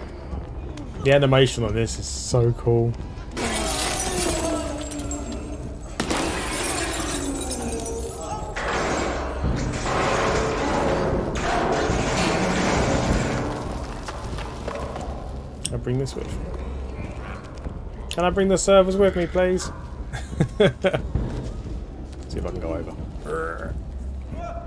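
A man talks into a headset microphone with animation, close by.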